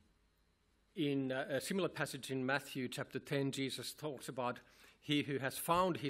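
A middle-aged man speaks calmly through a microphone in a reverberant hall.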